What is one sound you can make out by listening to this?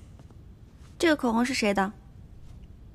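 A young woman asks a question sharply, close by.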